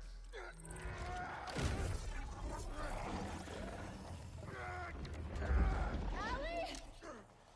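A monstrous creature growls and snarls deeply.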